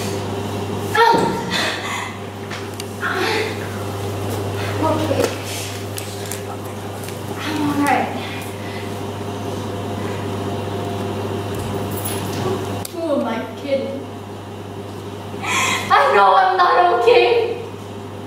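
A young woman speaks with expression in a small room.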